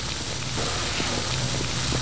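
Electric sparks crackle and fizz.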